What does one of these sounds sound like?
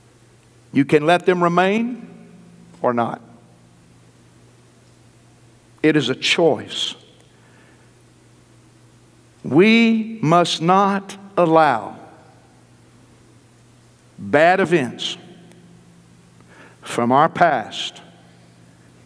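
A middle-aged man preaches through a microphone, speaking with emphasis in short bursts.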